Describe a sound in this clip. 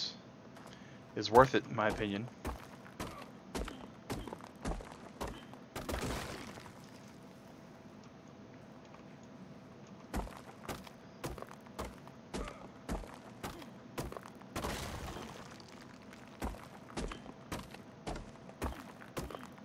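A pickaxe strikes rock with sharp, repeated knocks.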